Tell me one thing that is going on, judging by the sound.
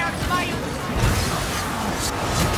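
A magical blast crackles and booms.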